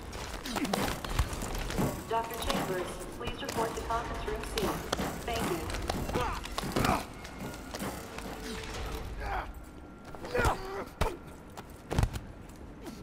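Bodies thump onto the floor.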